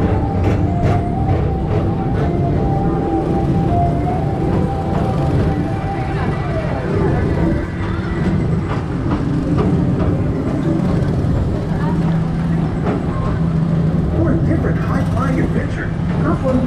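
A ride vehicle hums and rumbles steadily as it glides along a track.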